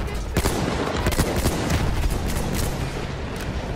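An explosion blasts with a deep rumble.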